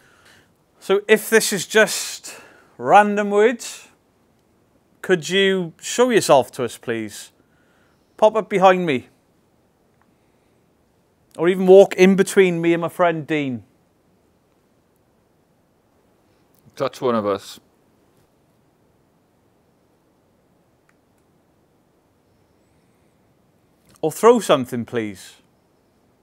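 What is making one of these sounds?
A man speaks calmly in short bursts, close to the microphone.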